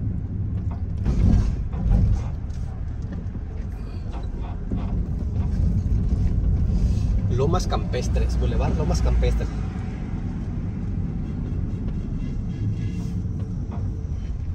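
Tyres roll over a wet road with a low rumble.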